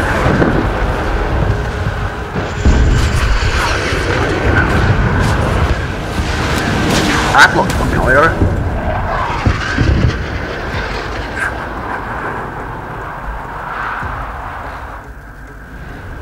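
A jet engine roars loudly.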